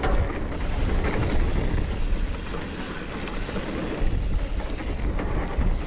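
Bicycle tyres roll and crunch over a dirt trail.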